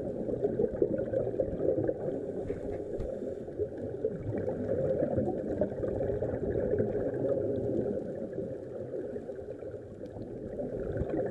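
Air bubbles from a scuba regulator gurgle and rush underwater.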